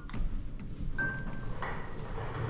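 An elevator chime beeps once.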